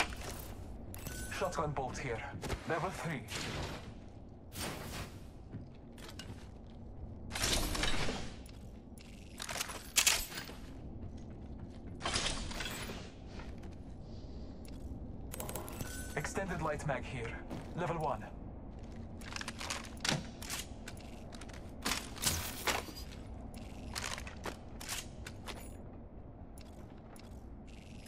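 Items are picked up with short clicks and clinks.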